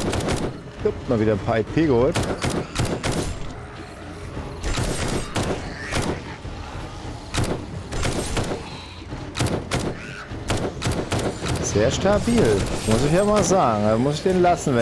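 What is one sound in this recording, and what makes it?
A creature groans and snarls close by.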